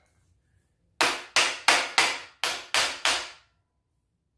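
A hammer taps on a metal floor jack.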